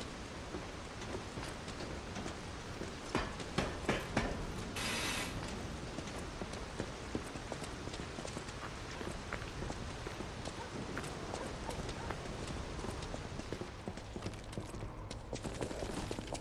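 Footsteps tread steadily on hard stone.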